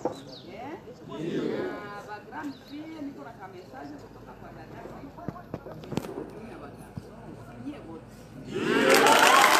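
A woman speaks with animation to a crowd outdoors.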